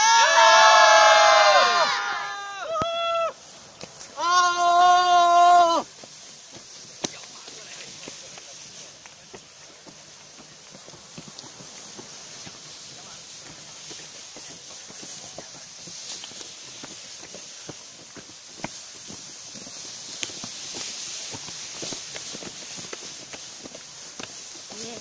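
Footsteps shuffle on a stone path.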